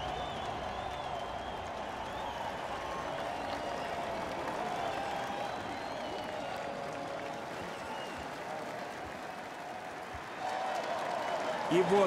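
A large crowd cheers and shouts in a big arena.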